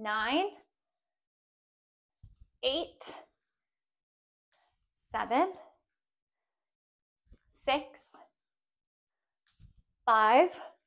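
A young woman speaks in short, clear bursts close by.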